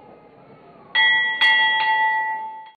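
A temple bell rings loudly twice and keeps ringing out.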